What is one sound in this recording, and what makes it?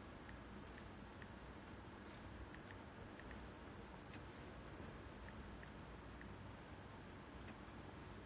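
Light taps sound on a touchscreen close by.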